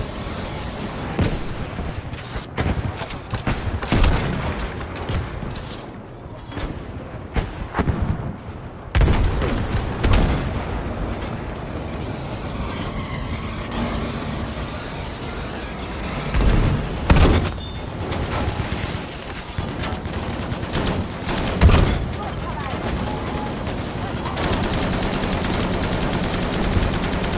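Explosions boom again and again.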